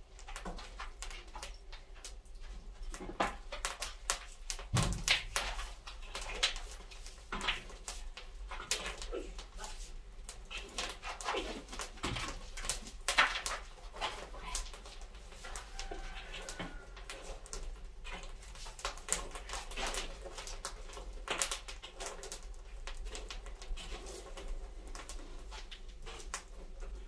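A wood fire crackles and pops in an oven.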